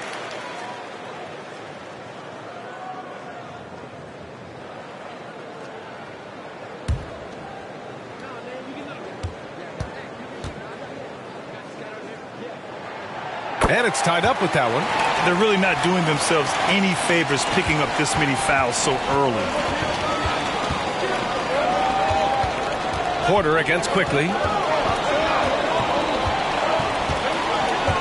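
A crowd murmurs in a large echoing arena, then roars loudly.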